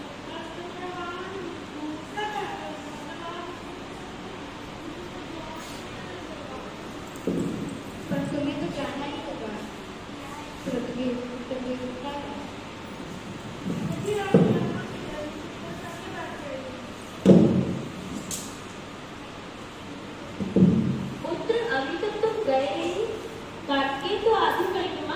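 A young woman speaks into a microphone, heard through a loudspeaker in an echoing room.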